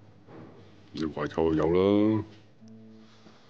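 A middle-aged man speaks in a low, grave voice close by.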